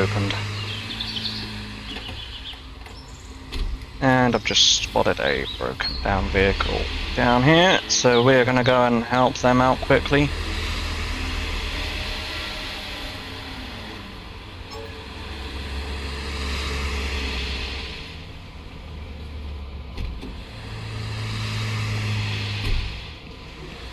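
A car engine hums steadily and rises as the car speeds up.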